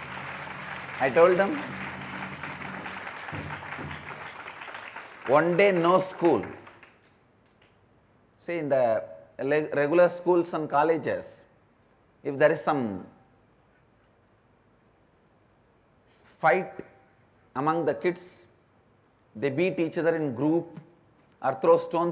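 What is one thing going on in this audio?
A man speaks calmly and with animation into a microphone, in short phrases with pauses.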